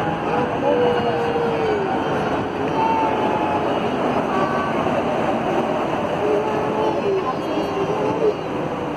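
A train rumbles loudly along the track.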